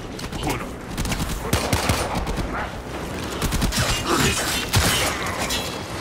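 Energy weapons fire in rapid crackling bursts.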